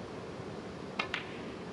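A cue strikes a ball with a sharp tap.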